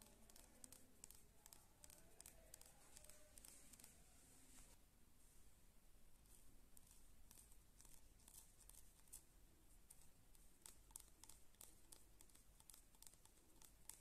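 Fingers tap and scratch on a hard shell close by.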